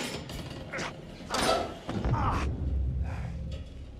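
A body falls and lands with a heavy thud.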